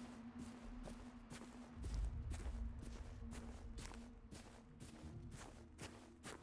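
Footsteps crunch steadily through grass and undergrowth.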